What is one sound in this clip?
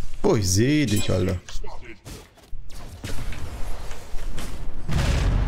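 Magic blasts crackle and whoosh in a fantasy battle.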